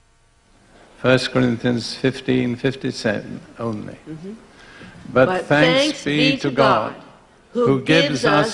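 An elderly man speaks calmly into a microphone over loudspeakers in a large hall.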